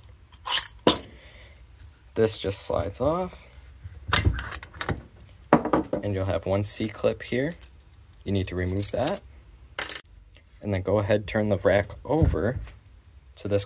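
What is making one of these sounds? Metal parts clink and knock against each other.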